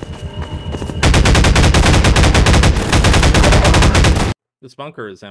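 A submachine gun fires in rapid bursts.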